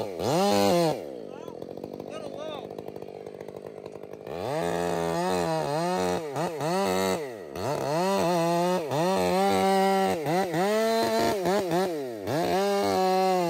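A chainsaw engine revs up and down loudly, idling quietly in between.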